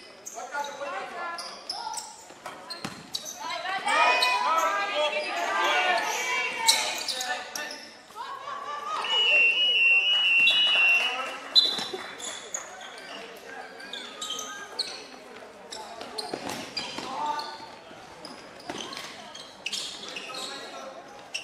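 Young women shout and call out to each other in an echoing hall.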